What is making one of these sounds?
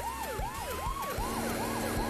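A helicopter whirs overhead.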